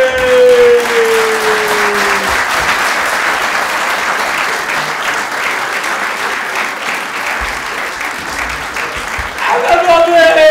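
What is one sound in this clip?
An audience laughs and applauds loudly in a large hall.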